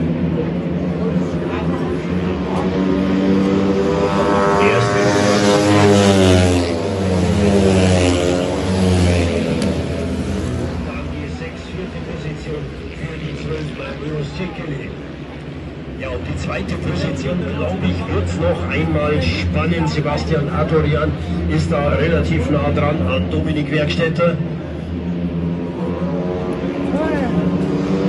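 Motorcycle engines roar loudly as bikes race past, rising and falling in pitch.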